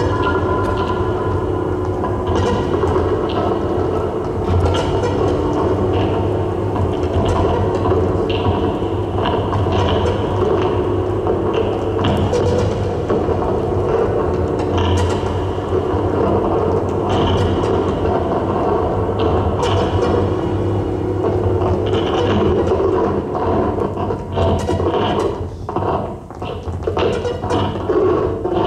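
A modular synthesizer plays droning, bubbling electronic tones with sharp blips.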